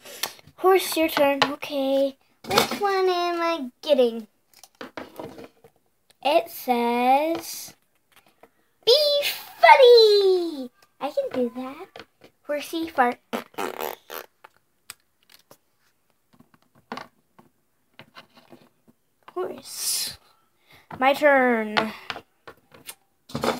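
Small plastic toy figures tap and knock on a hard surface.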